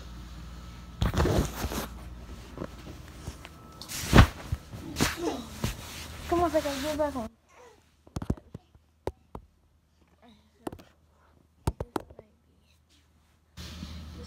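Fabric rustles and thumps against a phone's microphone.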